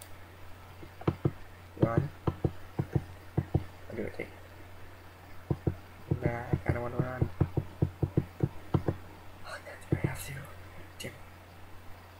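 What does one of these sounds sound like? A young man talks calmly and close into a headset microphone.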